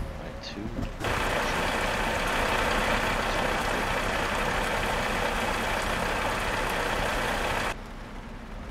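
Rain hisses down steadily.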